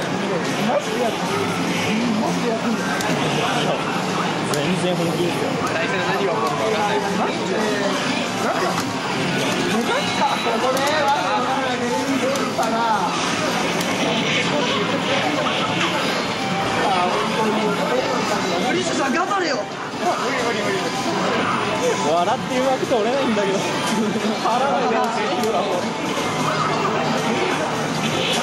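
Punches, kicks and blasts from a fighting game play through a loudspeaker.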